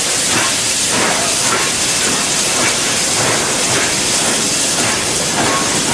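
A steam locomotive chuffs in a steady rhythm as it pulls away.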